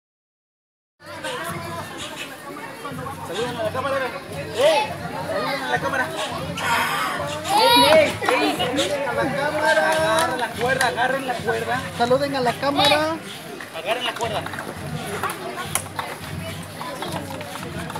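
A crowd of children and adults chatter and call out nearby.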